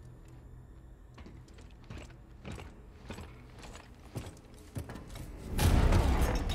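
Heavy boots clank on metal as a soldier climbs.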